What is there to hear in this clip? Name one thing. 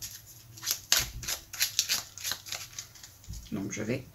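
Playing cards riffle and flick rapidly as they are shuffled by hand.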